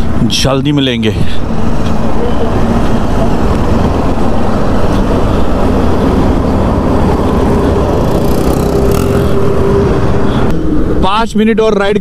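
A motorcycle engine rumbles close by throughout.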